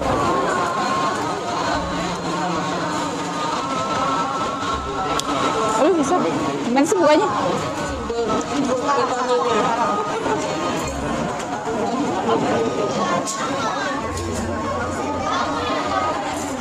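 A crowd of people chatters all around indoors.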